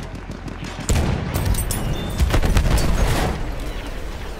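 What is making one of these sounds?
A loud explosion booms close by.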